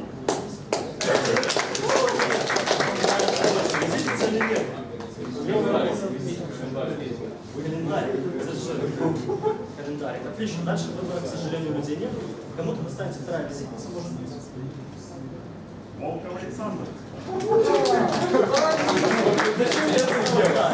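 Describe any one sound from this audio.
An audience of young men murmurs and chatters.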